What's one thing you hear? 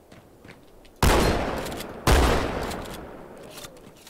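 A gun fires loud shots in quick succession.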